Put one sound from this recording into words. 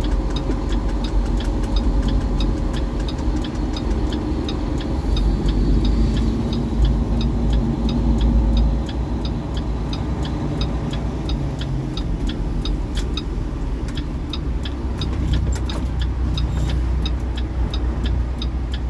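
A car engine rumbles at low speed.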